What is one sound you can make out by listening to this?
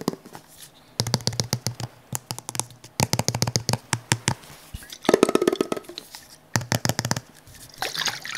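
Fingernails drum quickly on a metal lid close to a microphone.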